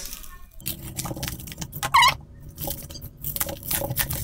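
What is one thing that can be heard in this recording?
A knife cuts through plastic packaging.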